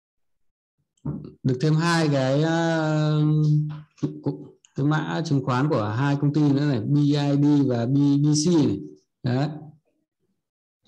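A man speaks calmly and close to a microphone, as if over an online call.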